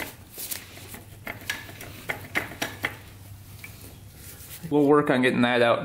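A wrench clicks as it loosens a bolt.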